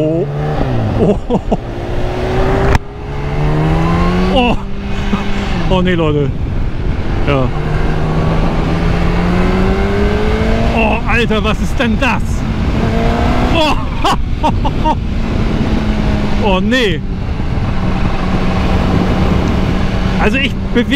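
A motorcycle engine roars, revving up and down through the gears.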